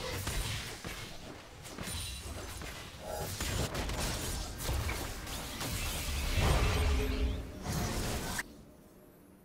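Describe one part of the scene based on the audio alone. Magic blasts, clashes and impacts burst in a fast game battle.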